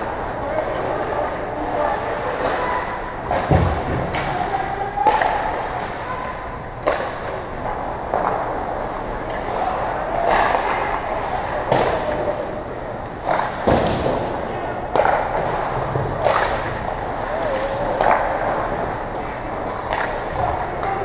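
Skates scrape on ice and echo around a large rink.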